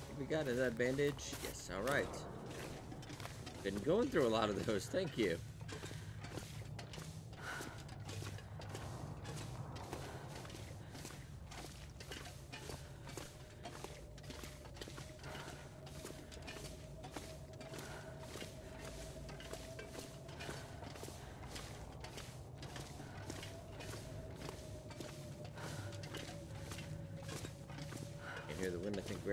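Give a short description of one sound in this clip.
Footsteps crunch steadily on gravel and rock.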